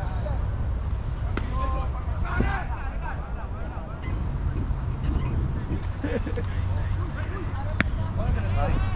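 Several men call out and chatter at a distance across an open field.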